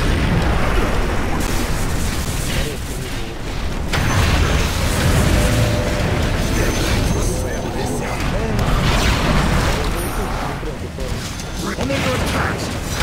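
Spell effects and combat sounds from a video game crash and whoosh.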